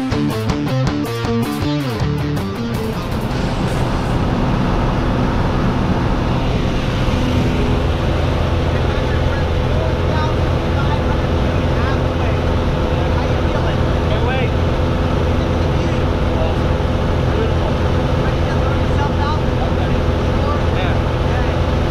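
A small plane's engine drones loudly and steadily.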